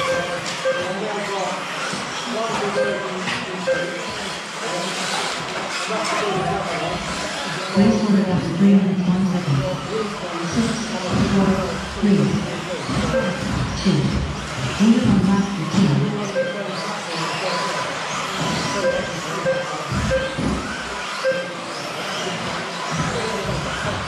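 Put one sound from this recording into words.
Small electric model cars whine as they race around in a large echoing hall.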